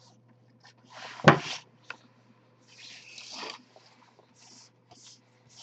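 Gloved hands brush and rustle over a table.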